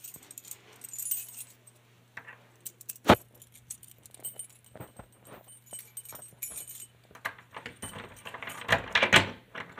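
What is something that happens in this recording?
A doorknob rattles and clicks as a hand turns it.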